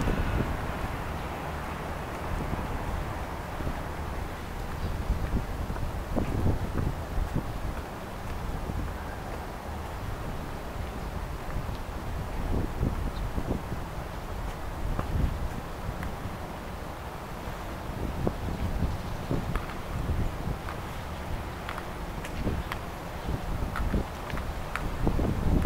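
Wind blows outdoors, buffeting the microphone in low gusts.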